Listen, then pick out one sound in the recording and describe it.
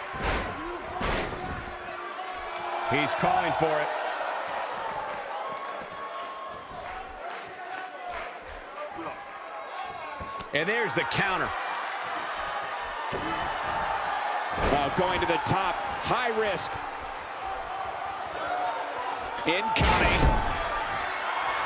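Bodies slam down hard onto a wrestling ring mat.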